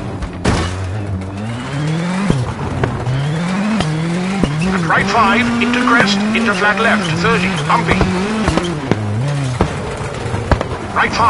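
A rally car engine revs hard, climbing in pitch and dropping with each gear change.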